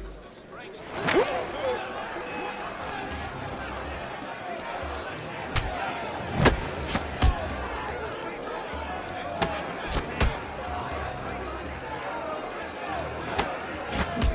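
A crowd of men cheers and shouts loudly.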